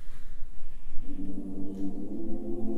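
A choir of children begins singing together in harmony.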